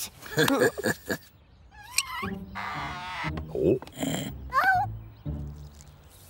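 An elderly woman speaks in a sly, scheming voice.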